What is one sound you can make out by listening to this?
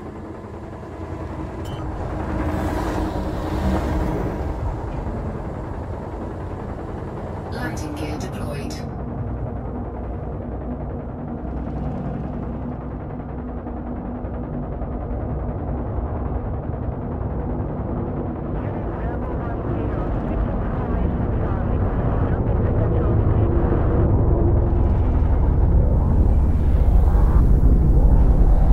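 A spacecraft engine hums with a deep, steady rumble that grows louder.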